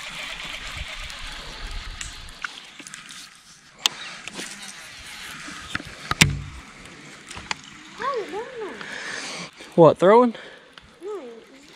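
A fishing reel clicks as it is handled.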